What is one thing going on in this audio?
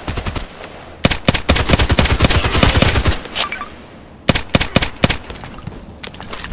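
Rapid gunshots fire in quick bursts.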